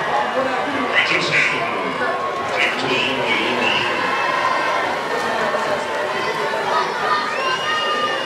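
Young men cheer and shout outdoors.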